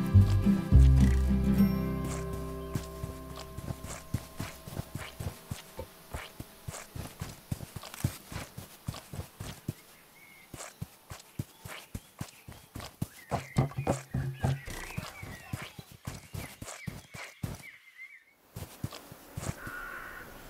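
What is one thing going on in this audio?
Light footsteps patter quickly and steadily.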